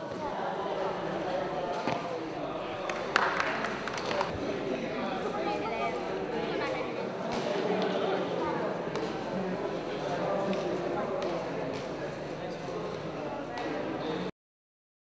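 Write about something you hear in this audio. Hands thump and slap on a pommel horse.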